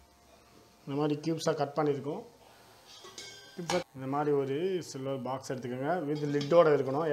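A metal lid clanks against a tin container.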